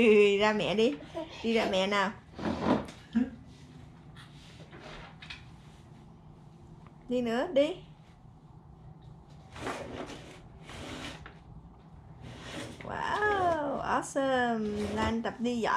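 A plastic toy walker rattles as it rolls across the floor.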